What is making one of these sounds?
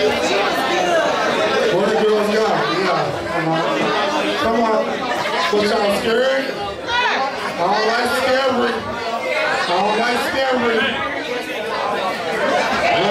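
A crowd of young men and women cheers and shouts loudly close by.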